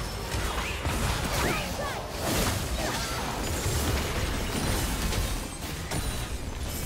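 Spell effects whoosh and crackle in a busy fight between game characters.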